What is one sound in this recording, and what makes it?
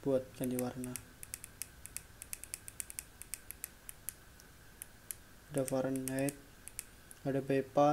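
A small plastic button clicks rapidly, over and over.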